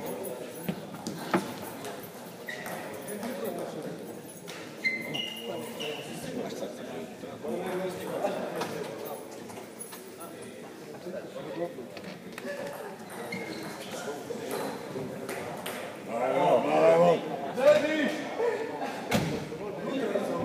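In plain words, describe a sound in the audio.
A table tennis ball clicks back and forth between paddles and the table in a large echoing hall.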